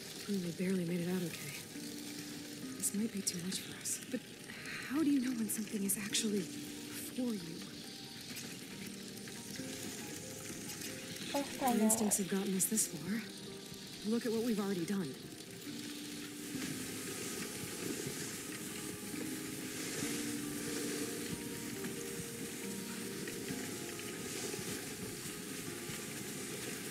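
Sled dogs pad over snow.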